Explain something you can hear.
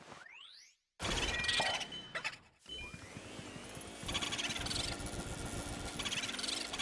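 A video game vacuum whooshes and hums.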